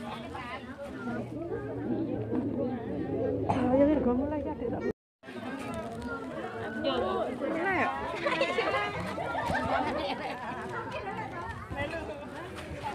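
A crowd of women and men chatter loudly all at once.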